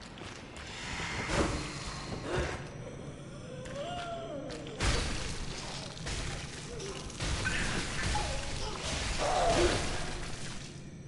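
A beast snarls and growls.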